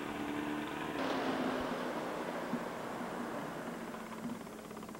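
A small outboard motor hums close by.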